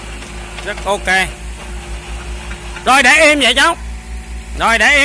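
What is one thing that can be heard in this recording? A small excavator engine runs with a steady low rumble.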